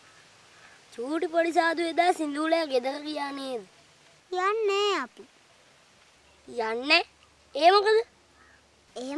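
A young boy speaks with animation, close by.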